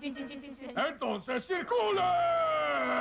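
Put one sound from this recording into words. A gruff cartoon male voice shouts.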